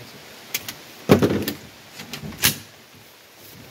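A rifle clunks as it is lifted and set down.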